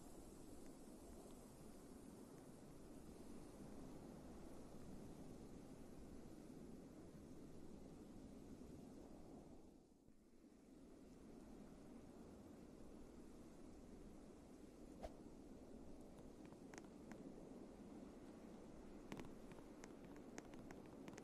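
Wind blows steadily across open snow.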